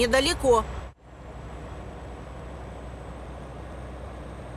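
A truck engine hums steadily as it drives along.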